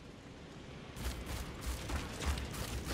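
Heavy footsteps thud and rustle through tall grass.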